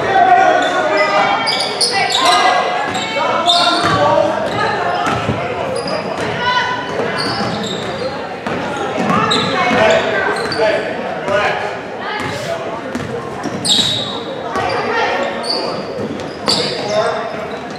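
Young women shout to each other across an echoing gym.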